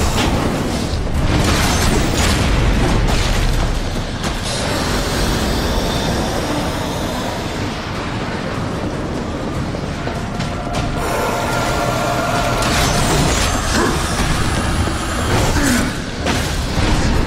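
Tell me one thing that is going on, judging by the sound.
A heavy blade clashes and strikes.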